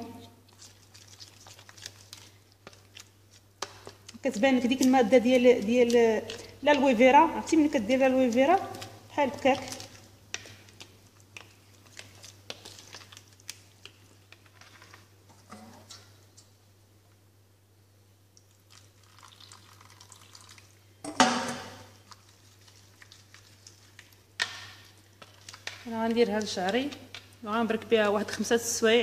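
A spoon scrapes and clinks against a bowl while stirring a thick paste.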